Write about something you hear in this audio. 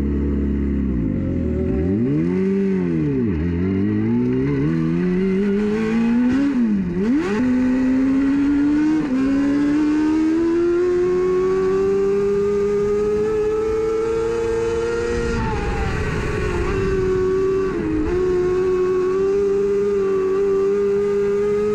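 A race car engine revs up and down, then roars loudly as the car speeds up.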